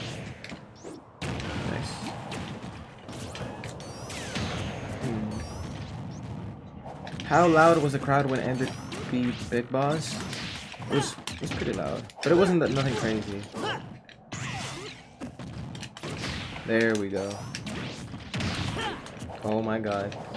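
Video game fighters clash with punchy hits and whooshing attacks.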